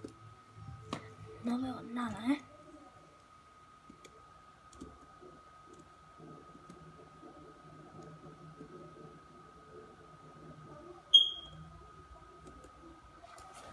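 Laptop keys click softly now and then.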